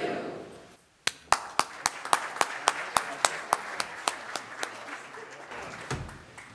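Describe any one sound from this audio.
A young man claps his hands.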